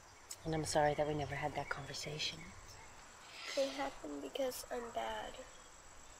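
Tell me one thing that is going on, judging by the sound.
A girl speaks softly and sadly, close by.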